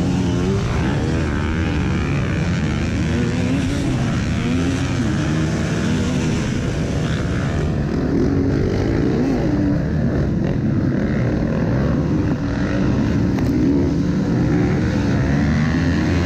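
A dirt bike engine roars up close, revving up and down.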